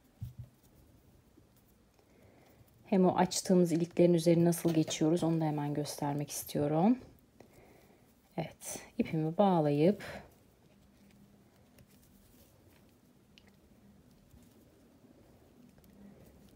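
Soft crocheted fabric rustles as hands lift and fold it.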